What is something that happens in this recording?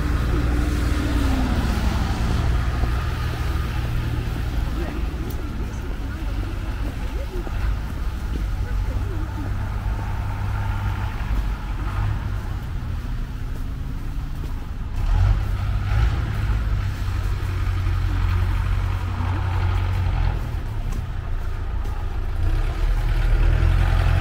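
Cars drive past on a wet road, tyres hissing.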